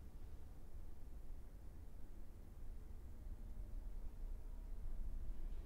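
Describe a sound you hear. A cello plays a low, sustained note in an echoing hall.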